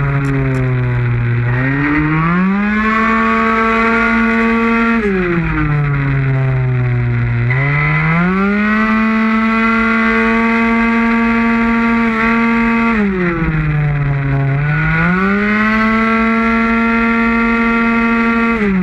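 A motorcycle engine roars loudly, rising and falling in pitch as it revs up and slows for corners.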